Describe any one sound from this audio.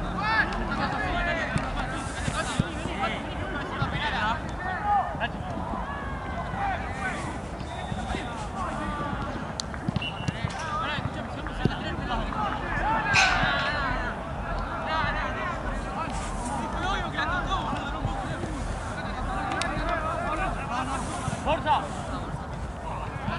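Young men shout and call to each other across an open pitch outdoors.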